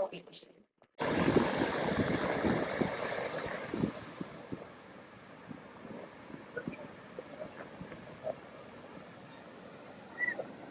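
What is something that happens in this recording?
Ocean waves break and rush on the shore.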